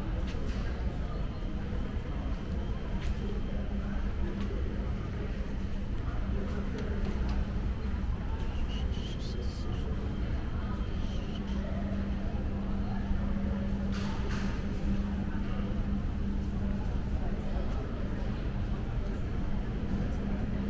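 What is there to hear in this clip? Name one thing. A crowd murmurs in the distance in a large echoing hall.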